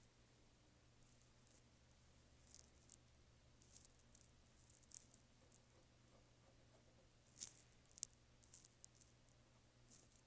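A pencil scratches and hisses softly across paper.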